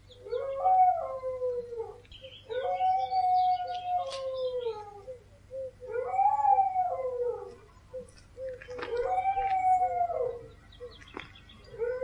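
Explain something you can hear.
Several animals howl together in long, wavering cries that rise and fall.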